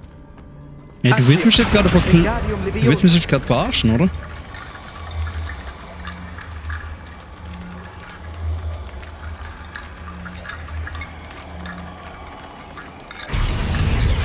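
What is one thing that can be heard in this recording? A magical spell hums and crackles.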